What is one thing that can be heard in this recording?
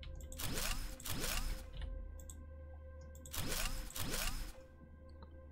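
An electric beam crackles and buzzes in short bursts.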